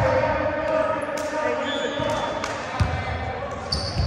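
A volleyball is struck with a sharp slap in a large echoing hall.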